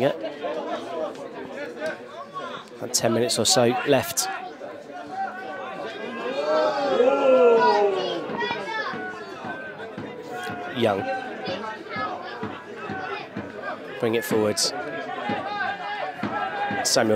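Spectators chatter and call out in the distance.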